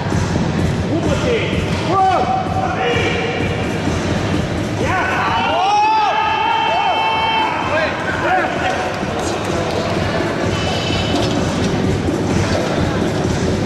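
A crowd shouts and cheers with excitement in a large hall.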